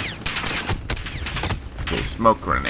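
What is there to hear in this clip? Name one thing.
Rifle shots crack in rapid bursts close by.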